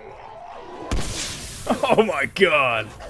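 A blast booms.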